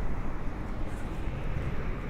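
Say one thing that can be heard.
A truck rumbles by in the distance.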